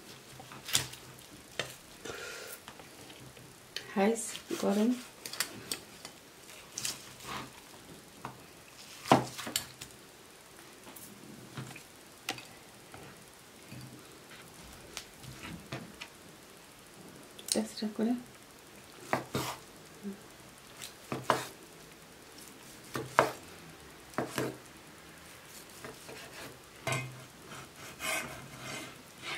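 A knife chops and scrapes through roast bird on a cutting board.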